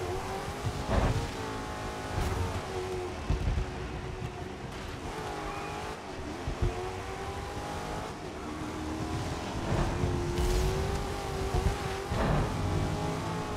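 A car bumps and thuds against other cars.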